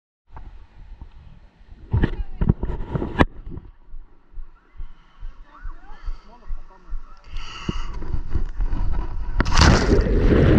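Water splashes and laps close by.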